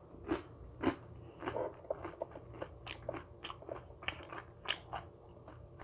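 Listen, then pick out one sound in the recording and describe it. Chocolate sticks snap crisply.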